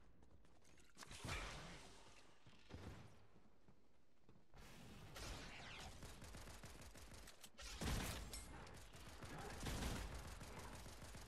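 Gunfire and blasts from a video game crackle and boom.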